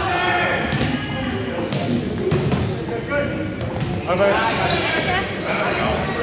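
Several adult players call out to each other in a large echoing gym.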